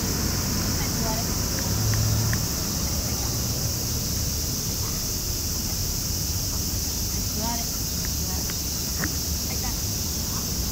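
A woman speaks softly to a dog nearby.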